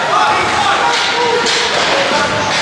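A hockey stick smacks a puck.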